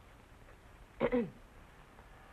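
A middle-aged woman speaks briefly.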